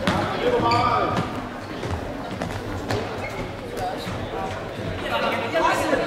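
A ball thuds as players kick it across a hall floor.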